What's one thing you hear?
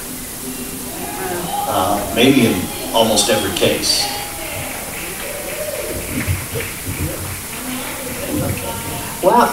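A woman speaks into a microphone with animation, heard through a loudspeaker in a large room.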